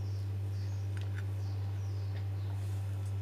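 A sandwich is set down on a ceramic plate with soft taps.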